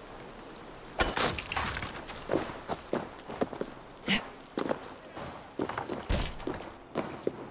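Footsteps thud on stone at a quick pace.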